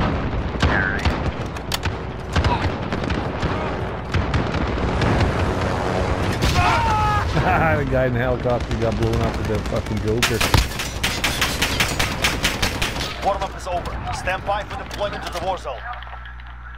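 Rapid gunfire cracks in bursts.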